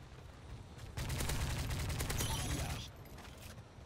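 Rapid gunfire rings out in short bursts.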